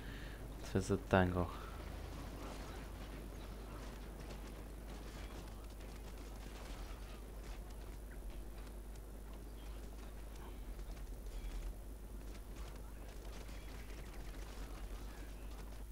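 A troop of soldiers marches over open ground.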